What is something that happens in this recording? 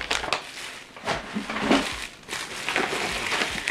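Foil and cardboard crinkle and rustle as hands move them.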